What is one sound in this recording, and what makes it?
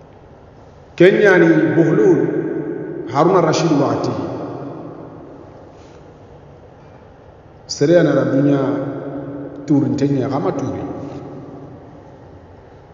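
A young man recites in a slow chanting voice through a close microphone, with a lingering echo.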